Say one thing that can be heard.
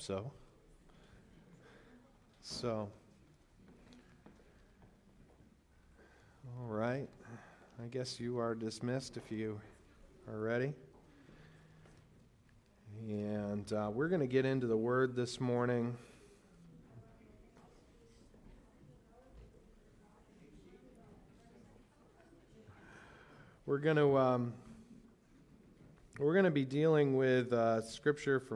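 A man speaks calmly through a microphone and loudspeakers in an echoing hall, in bursts with pauses.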